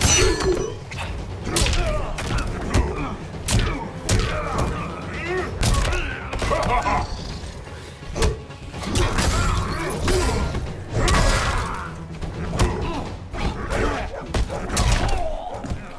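Heavy punches and kicks land with loud thuds and smacks.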